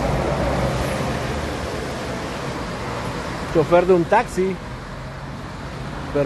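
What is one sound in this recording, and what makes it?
A bus drives past on a wet road.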